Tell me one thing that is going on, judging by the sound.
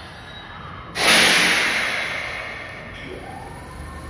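Air brakes on a train release with a loud hiss.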